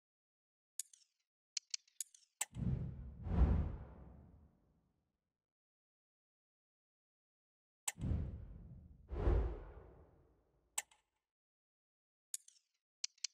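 Soft menu clicks tick several times.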